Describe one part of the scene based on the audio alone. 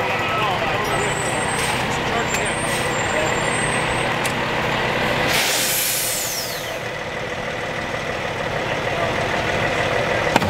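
A fire engine's diesel engine idles steadily nearby.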